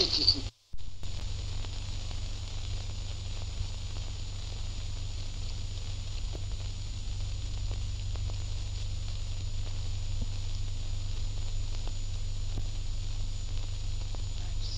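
Banknotes rustle and flick as they are counted by hand.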